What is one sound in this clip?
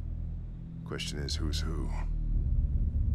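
A man speaks gruffly and slowly.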